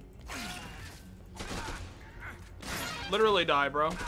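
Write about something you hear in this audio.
A sword slashes and strikes a body.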